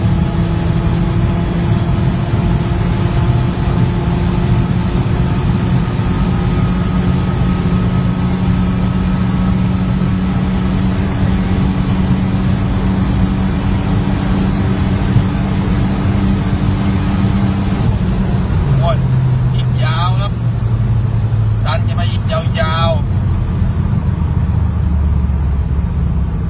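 Wind and tyre noise rush loudly throughout.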